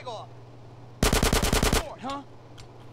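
A gun fires a rapid burst of shots.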